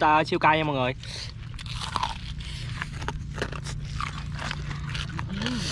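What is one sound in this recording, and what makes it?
A teenage boy chews and slurps food noisily close by.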